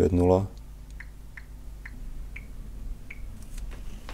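A phone gives short soft beeps as keys are tapped.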